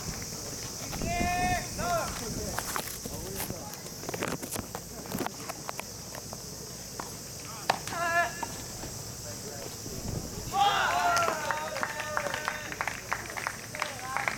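Young men shout out briefly across the courts, outdoors and a little distant.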